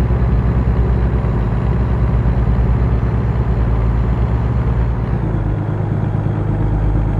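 A truck's diesel engine rumbles steadily while driving.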